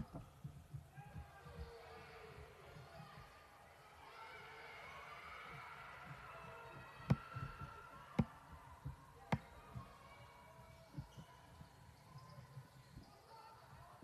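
A basketball bounces on a hardwood floor, echoing in a large gym.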